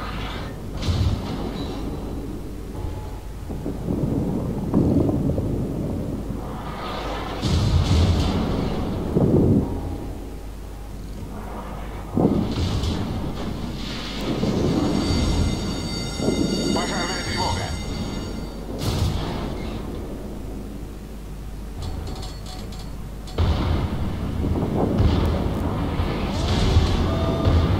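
Heavy guns fire with deep, booming blasts.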